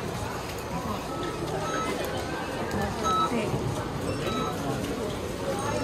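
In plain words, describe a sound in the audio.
Checkout scanners beep.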